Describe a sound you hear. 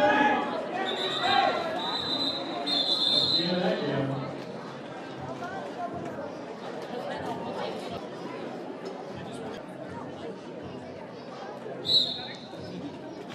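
A referee's whistle blows in sharp short blasts.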